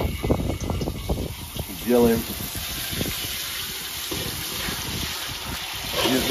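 Hot oil sizzles and hisses in a wok.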